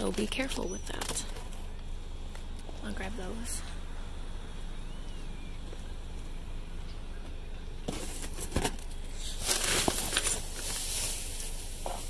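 Cardboard rustles and scrapes as a hand shifts boxes.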